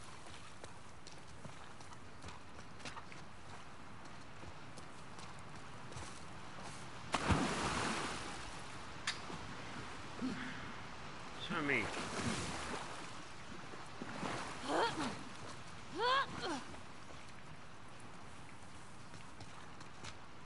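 Footsteps crunch over rubble and wet ground.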